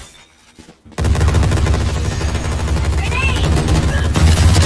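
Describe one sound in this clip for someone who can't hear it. A heavy gun fires in a rapid, rattling stream of shots.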